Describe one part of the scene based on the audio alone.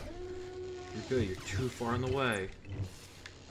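A lightsaber swings with a buzzing whoosh.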